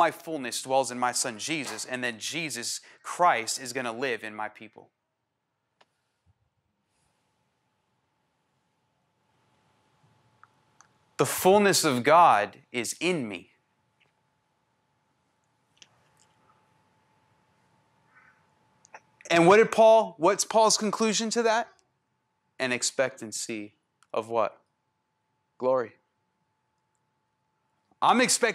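A man speaks with animation into a microphone, pausing between phrases.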